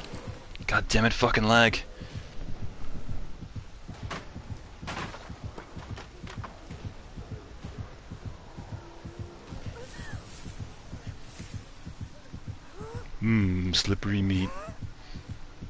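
A young man exclaims loudly close to a microphone.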